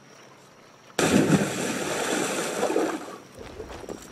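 A figure splashes into water.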